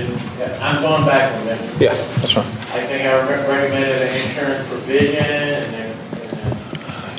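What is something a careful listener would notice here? An adult speaks steadily through a microphone in a large, echoing hall.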